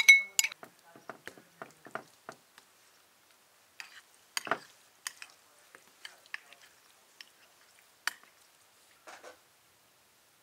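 Utensils clink and scrape against a glass dish while meat is mixed.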